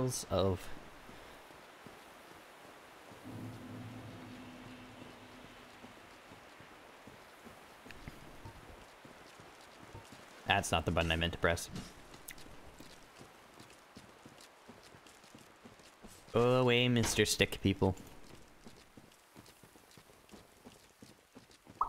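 Footsteps with clinking armour tread through grass.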